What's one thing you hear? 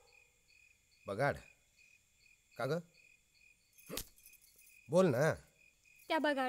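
A man speaks with feeling nearby.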